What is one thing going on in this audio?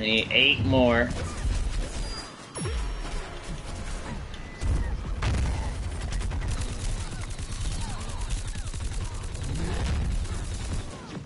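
Cartoonish video game blasts and explosions pop and boom rapidly.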